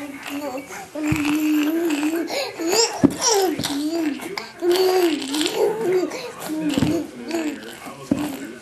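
A baby giggles and laughs happily.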